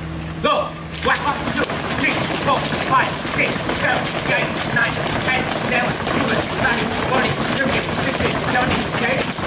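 Many feet stamp and patter as a group jogs in place.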